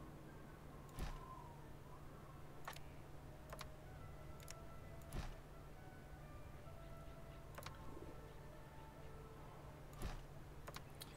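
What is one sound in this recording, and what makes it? Short soft clicks sound now and then as buildings are placed.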